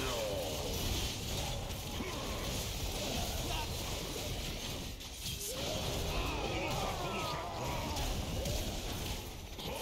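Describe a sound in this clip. Magic spells crackle and whoosh during a fast, busy battle.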